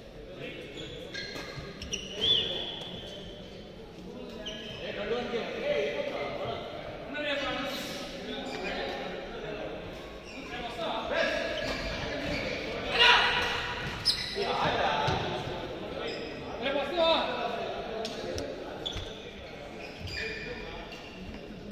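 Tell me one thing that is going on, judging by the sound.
Young men call out and talk with animation across an echoing hall.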